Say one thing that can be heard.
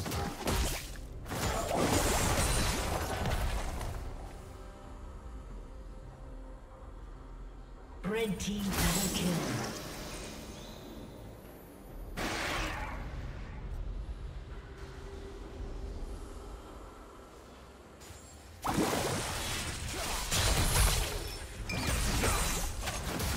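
Spell effects whoosh and crash in a busy video game fight.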